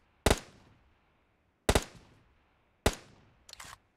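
A sniper rifle fires loud single shots that echo away.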